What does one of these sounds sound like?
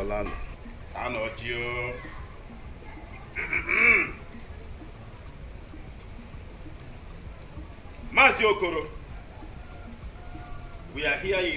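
An older man addresses a group, speaking loudly.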